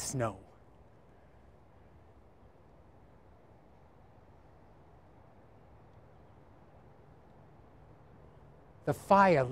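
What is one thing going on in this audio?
An elderly man speaks clearly outdoors through a microphone.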